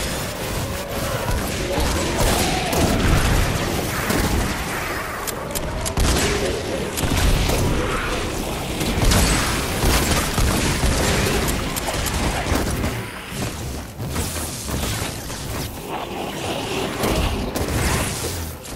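Energy blasts crackle and zap.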